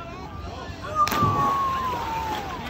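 A girl splashes into water.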